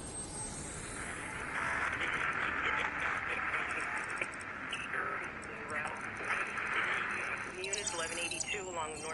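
An electronic tone hums and warbles steadily.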